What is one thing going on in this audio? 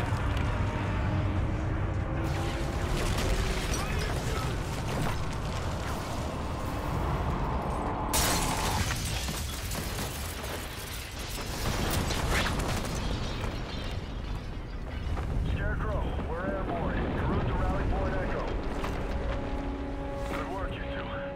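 Explosions boom and rumble, with debris crashing.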